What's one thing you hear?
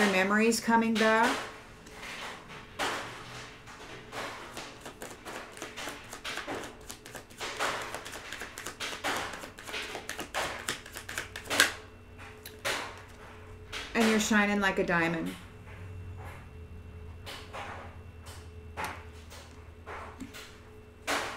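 A middle-aged woman talks calmly, close by.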